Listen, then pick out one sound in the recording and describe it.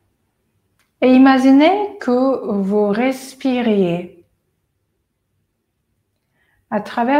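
A woman speaks calmly and slowly nearby.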